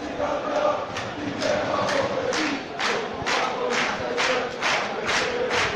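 A crowd of fans claps in rhythm.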